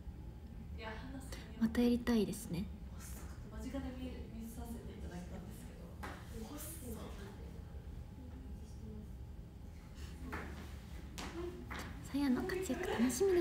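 A young woman speaks softly and calmly close to the microphone.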